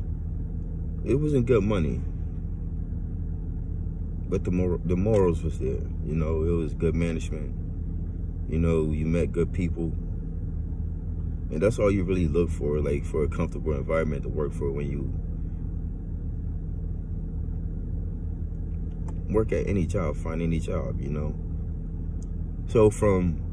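A man speaks calmly and closely in short bursts with pauses.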